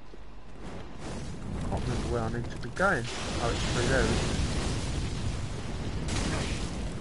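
Flames roar and burst.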